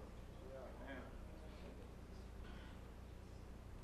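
A man speaks to an audience, faint and far off.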